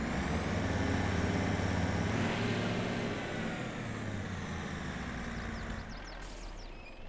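A pickup truck engine idles with a low rumble, then fades.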